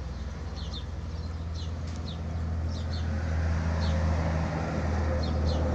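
A pencil scratches softly on paper in short strokes.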